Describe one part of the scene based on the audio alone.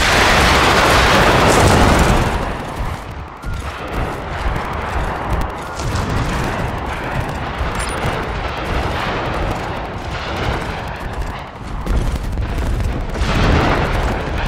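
Heavy footsteps of a large creature thud steadily across the ground.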